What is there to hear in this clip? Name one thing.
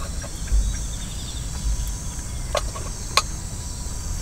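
Chopsticks scrape and tap against a pan.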